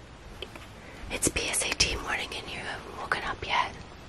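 A young man speaks drowsily, close by.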